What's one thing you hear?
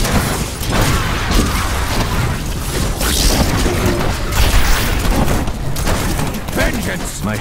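Video game projectiles fire in rapid shots.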